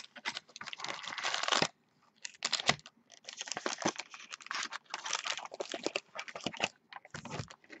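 Plastic-wrapped card packs rustle and crinkle as hands handle them.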